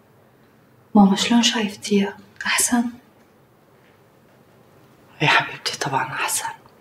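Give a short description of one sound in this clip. A woman speaks calmly across a room.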